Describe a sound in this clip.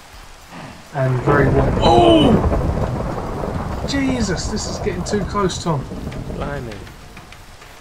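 Thunder rumbles after a lightning strike.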